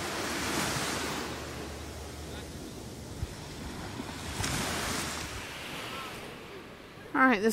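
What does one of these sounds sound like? Small waves wash gently onto the shore, outdoors.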